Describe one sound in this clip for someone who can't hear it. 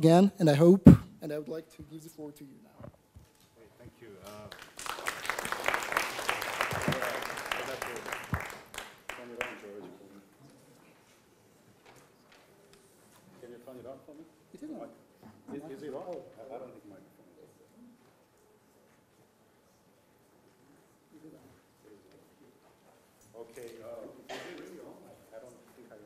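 A man speaks calmly over a microphone to an audience.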